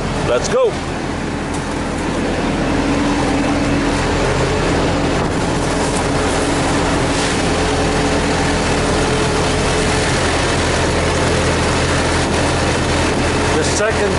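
A refrigeration unit's engine hums loudly and steadily nearby.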